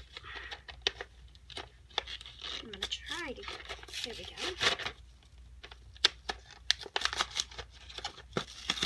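Plastic packaging crinkles and rustles as a young girl opens it.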